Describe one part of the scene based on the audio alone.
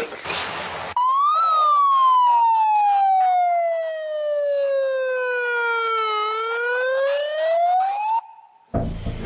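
A megaphone siren wails, falling slowly and then rising.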